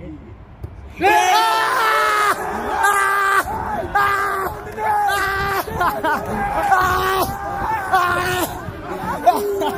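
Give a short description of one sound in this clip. Young men shout and cheer excitedly outdoors.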